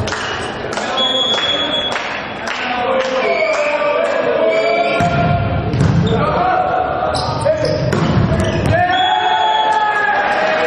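Shoes squeak on an indoor court floor.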